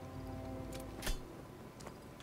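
A metal device clacks as it is set down.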